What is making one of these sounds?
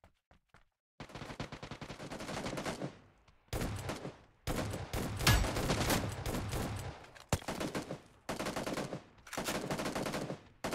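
A rifle fires loud rapid bursts.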